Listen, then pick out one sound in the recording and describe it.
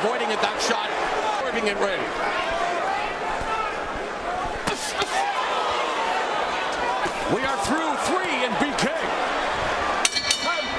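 A large crowd roars and cheers in a big arena.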